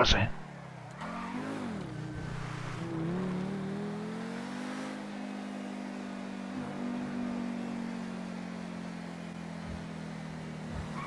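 A sports car engine revs up and then hums steadily.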